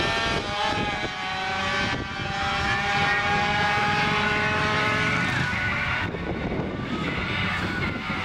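A motorcycle engine whines and revs.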